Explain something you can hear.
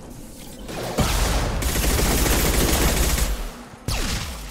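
A loud energy blast roars and crackles.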